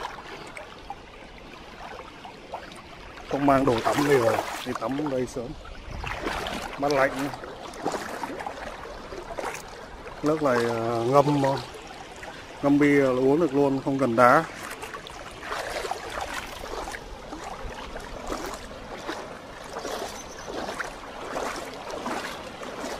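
A shallow stream ripples and trickles over stones.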